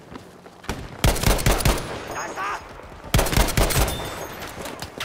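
Rifle shots crack loudly.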